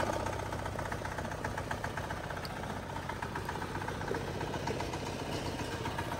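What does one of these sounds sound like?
A small petrol engine idles with a steady, rapid chugging rumble.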